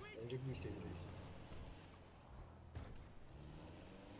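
A van door slams shut.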